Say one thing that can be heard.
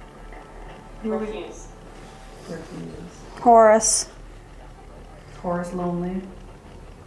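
A young woman speaks in short, hushed phrases nearby.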